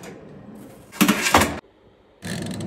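A metal tray slides into an oven with a rattle.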